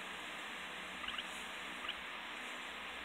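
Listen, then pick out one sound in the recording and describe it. A handheld game console gives a few short electronic chirps.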